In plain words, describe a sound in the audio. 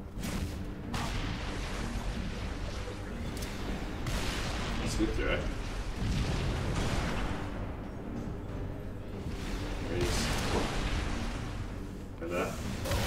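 Gunfire and explosions boom and rattle through a video game.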